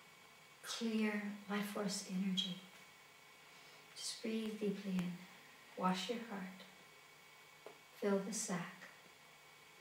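A middle-aged woman speaks slowly and calmly, close by, with long pauses.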